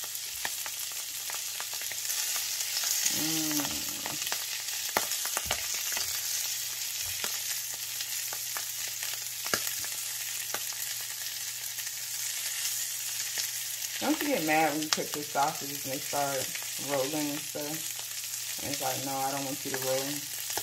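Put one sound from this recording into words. Sausages sizzle steadily in a hot pan.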